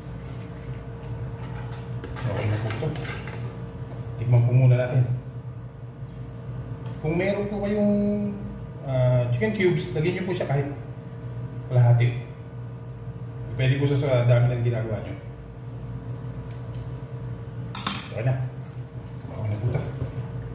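A spoon scrapes and stirs food in a frying pan.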